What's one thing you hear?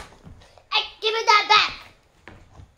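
A young child speaks loudly and excitedly close by.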